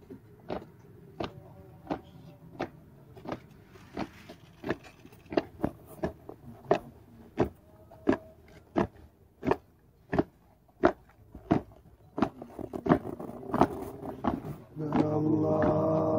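Boots stamp on pavement in a slow, steady marching step.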